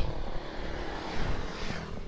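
A motorcycle engine hums as it passes close by.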